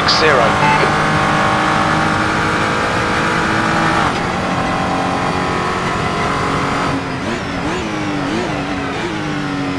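A racing car engine roars at high revs, its pitch shifting at each gear change.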